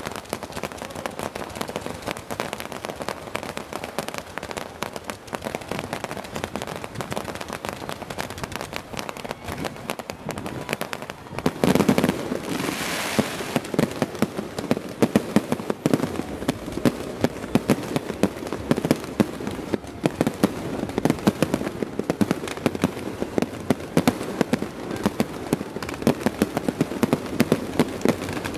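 Pop music plays loudly over loudspeakers with a steady beat.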